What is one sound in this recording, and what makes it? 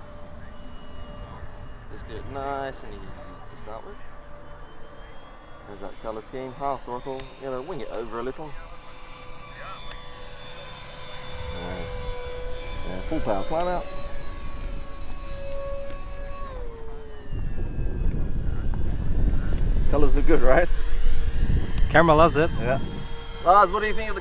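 A small propeller plane's engine drones overhead, its pitch rising and falling as it passes.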